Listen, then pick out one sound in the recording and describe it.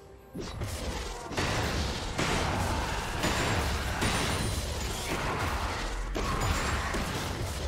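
Magic spell effects whoosh and crackle in a fast video game battle.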